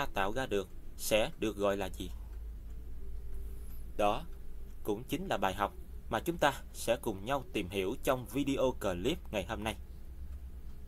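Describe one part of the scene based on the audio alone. A young man talks close to a microphone, with animation.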